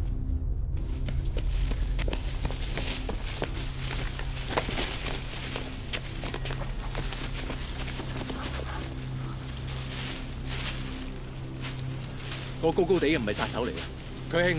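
Footsteps rush through rustling undergrowth.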